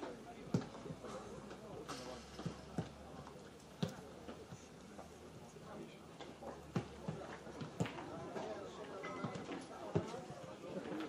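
Footballs are kicked with sharp thuds.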